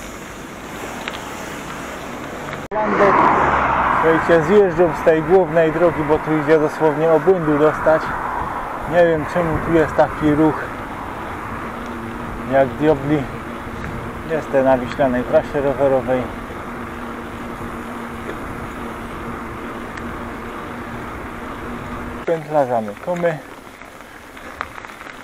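Wind rushes past a moving cyclist.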